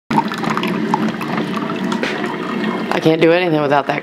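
A coffee maker hums and gurgles as it brews.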